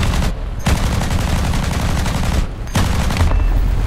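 An explosion booms on the ground.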